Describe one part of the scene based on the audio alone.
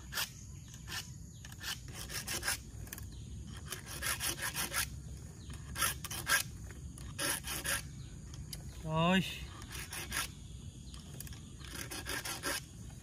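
Metal parts of a chainsaw click and clink as they are handled up close.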